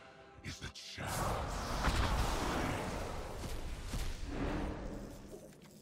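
A magical shimmering whoosh swells and fades.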